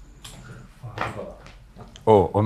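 A man speaks loudly nearby.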